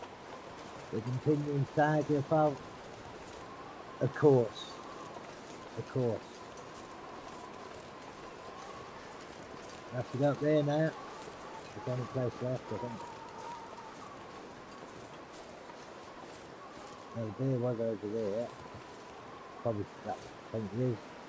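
A young man talks casually into a microphone, in short bursts.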